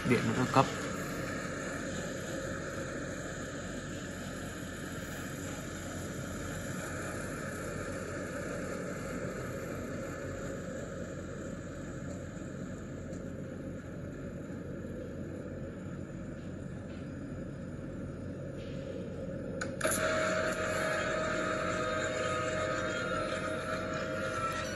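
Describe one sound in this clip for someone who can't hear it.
Fingers tap and slide on a glass touchscreen.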